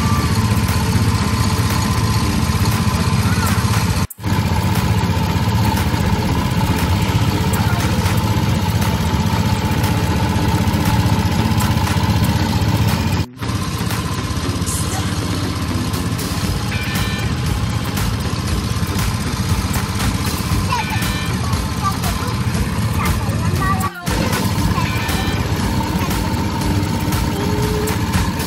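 A small motor hums steadily while a cart rolls along a path.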